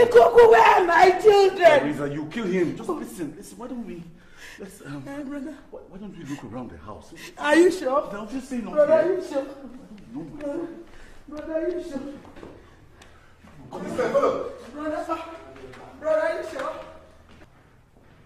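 A man shouts in distress.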